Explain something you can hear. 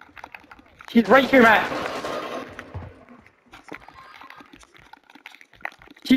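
Gunshots crack in quick, uneven bursts.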